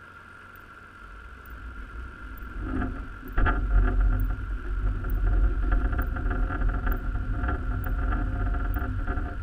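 A metal net frame drags and rumbles along the seabed underwater.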